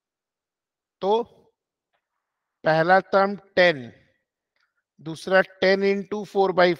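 A man speaks calmly through a microphone in short bursts.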